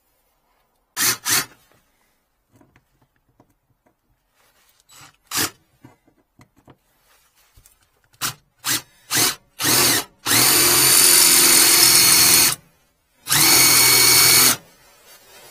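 A power drill whirs in short bursts, then runs steadily as it bores through metal.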